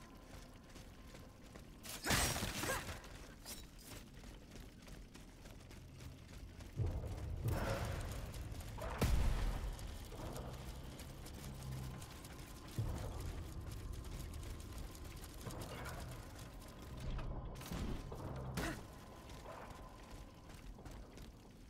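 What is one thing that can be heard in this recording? Footsteps crunch on gravel as a figure runs.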